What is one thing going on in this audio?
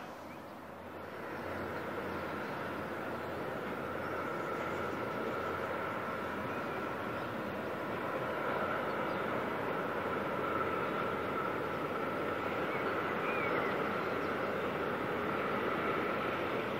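A freight train rumbles along distant tracks with a steady hum.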